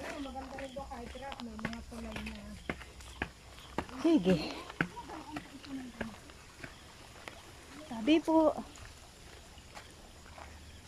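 Shoes scuff and tap on concrete steps outdoors.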